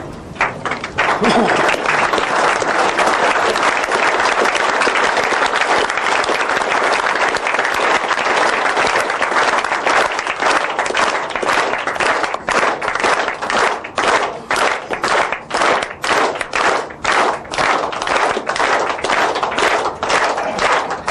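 A crowd applauds loudly and steadily.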